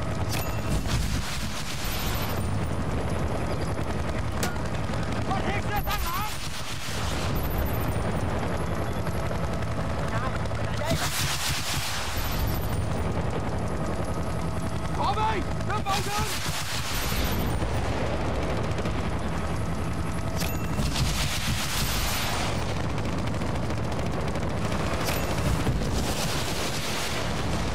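Explosions boom and rumble.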